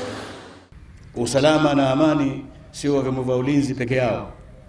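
A middle-aged man speaks formally into microphones, heard through loudspeakers.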